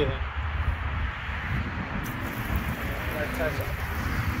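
Water sprays from a garden hose onto a plastic slide.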